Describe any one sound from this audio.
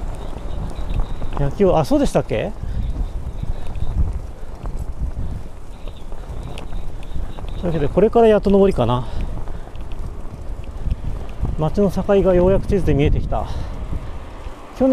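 Wind rumbles steadily against a moving rider outdoors.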